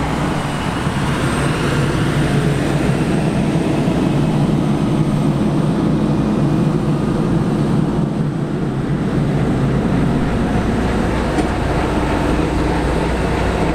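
A large tractor engine rumbles loudly and steadily close by.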